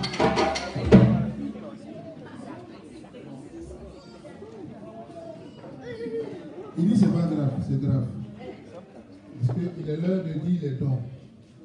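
A man speaks loudly into a microphone over a loudspeaker, in an echoing room.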